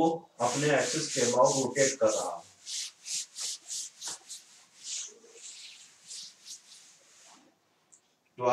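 A cloth wipes across a chalkboard in quick, rhythmic strokes.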